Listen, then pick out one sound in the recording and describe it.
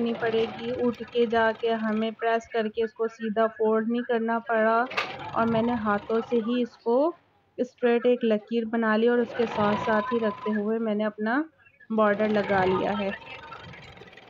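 A sewing machine whirs as it stitches.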